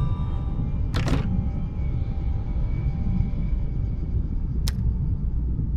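A soft click sounds twice.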